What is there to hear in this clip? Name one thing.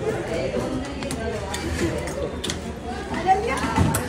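A turnstile clanks as it turns.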